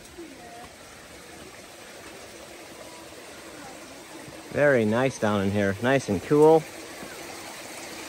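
Water trickles over rocks in the distance.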